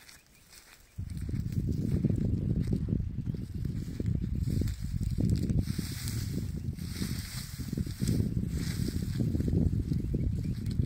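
Wind buffets the microphone outdoors with a deep, steady rumble.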